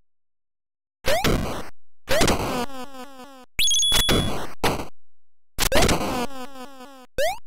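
Electronic blasts and bursts of crackling noise ring out from a video game.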